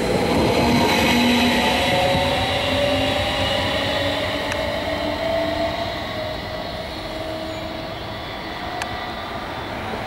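An electric motor whines with a falling pitch as a train drives off.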